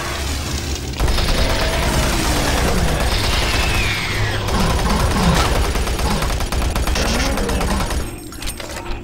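A monster growls and roars close by.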